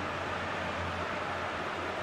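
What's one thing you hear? A large crowd cheers and claps in a stadium.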